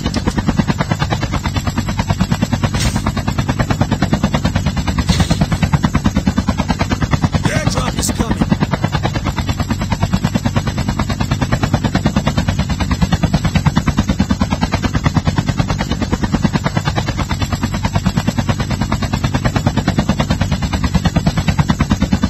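A helicopter's rotor thumps steadily and loudly close by.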